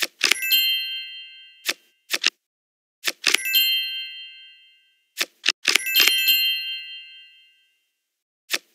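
Bright chimes ring out and fade as cards are played in a computer card game.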